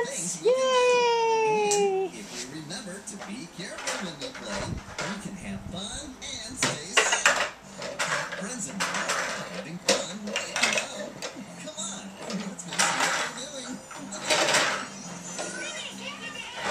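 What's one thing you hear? A television plays a singing voice and music nearby.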